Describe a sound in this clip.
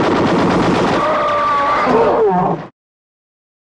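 A giant ape roars loudly.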